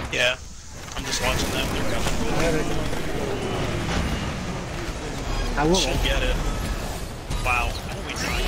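Game effects crash and zap loudly during a fight.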